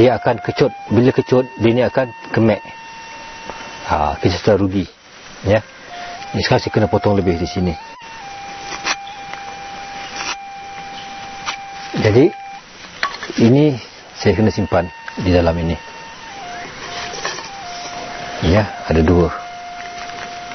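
An elderly man speaks calmly nearby, explaining.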